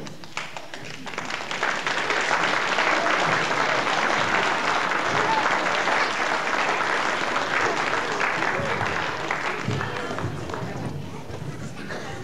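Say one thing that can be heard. An audience applauds loudly in a large hall, swelling and then fading.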